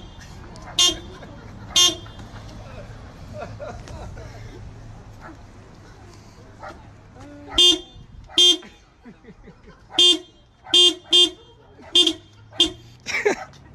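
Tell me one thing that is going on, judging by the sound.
A car horn honks in short bursts.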